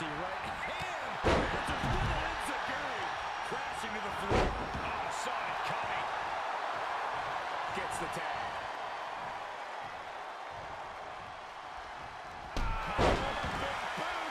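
A large arena crowd roars and cheers.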